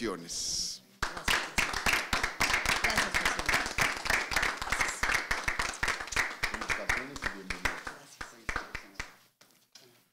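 A small group claps in applause.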